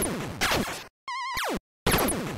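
A short warbling electronic tone sounds.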